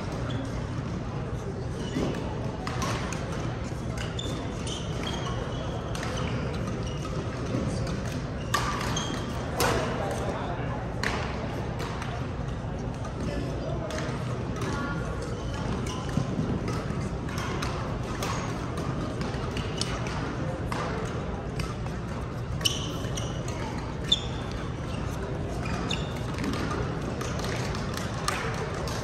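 A crowd of players chatters, echoing in a large hall.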